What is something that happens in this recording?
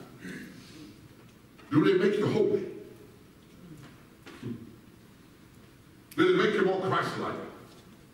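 A man speaks loudly with animation in a large echoing hall.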